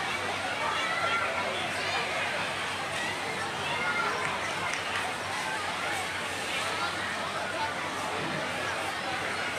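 A large crowd of children and adults chatters and shouts outdoors.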